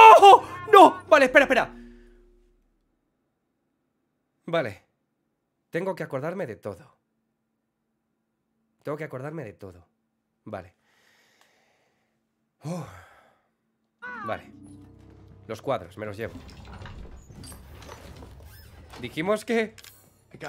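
A young man talks with animation into a close microphone, sometimes exclaiming loudly.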